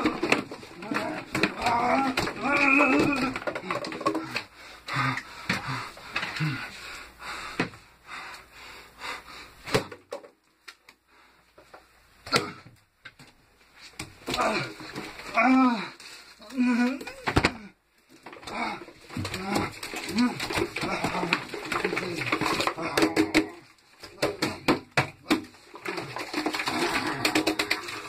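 A child scrubs a bathtub with a brush.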